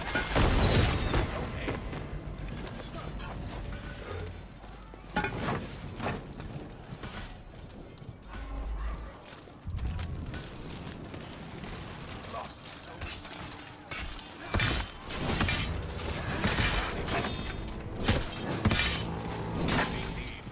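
Swords clash and strike armour.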